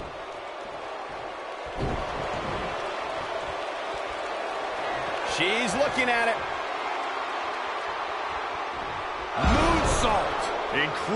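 A large crowd cheers and murmurs steadily.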